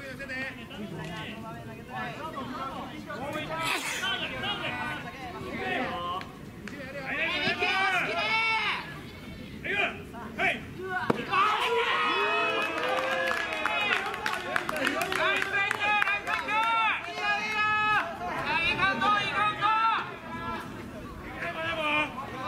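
Young men shout and chant loudly from a distance, outdoors.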